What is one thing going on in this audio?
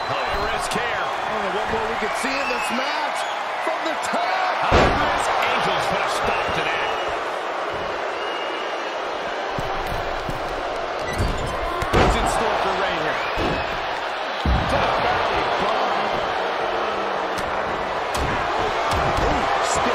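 Punches land with sharp smacks.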